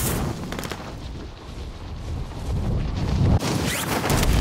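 Wind rushes loudly past during a fast fall through the air.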